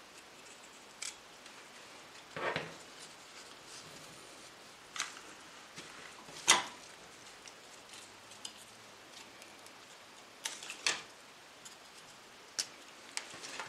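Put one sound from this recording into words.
Scissors snip flower stems.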